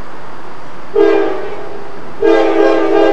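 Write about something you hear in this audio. A diesel locomotive's air horn blows twice in the distance.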